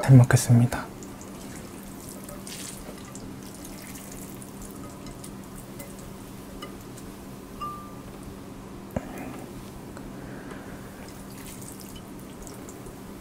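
Noodles are slurped and stirred with chopsticks.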